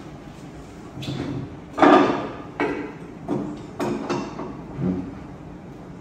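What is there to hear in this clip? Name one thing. Wooden objects knock and clatter on a wooden table.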